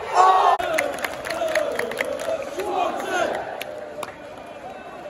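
Spectators clap their hands in rhythm.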